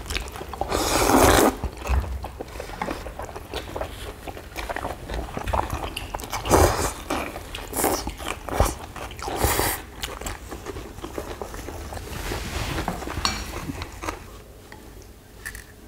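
Food is chewed with wet smacking sounds.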